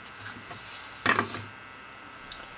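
A metal tool clatters as it is set into a holder.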